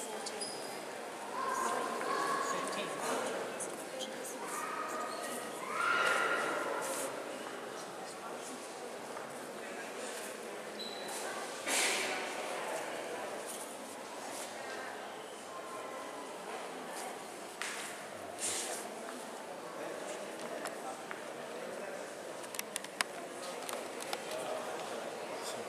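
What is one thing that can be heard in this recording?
Visitors chatter quietly in a large, echoing hall.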